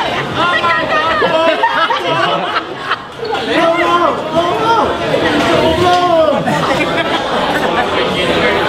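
A group of people sing together in a lively chorus.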